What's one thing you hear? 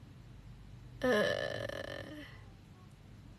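A young woman speaks briefly and softly close to the microphone.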